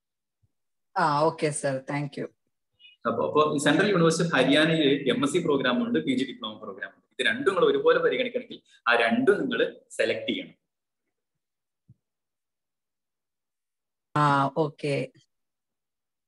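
A young man talks casually over an online call.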